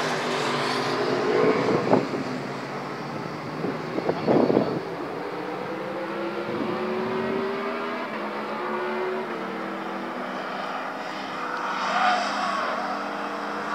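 Car engines hum steadily in the distance.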